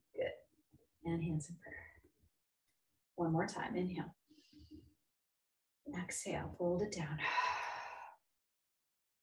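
A woman speaks calmly and clearly into a microphone close by.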